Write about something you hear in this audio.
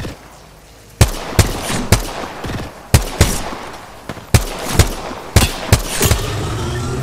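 Gunshots fire in sharp, rapid bursts.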